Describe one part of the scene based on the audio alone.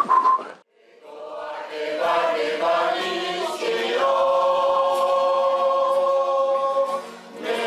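A group of men sing together in harmony.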